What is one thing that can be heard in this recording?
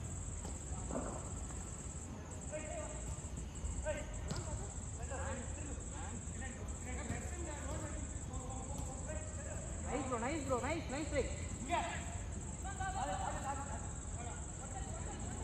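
Young men shout and call out across an outdoor pitch.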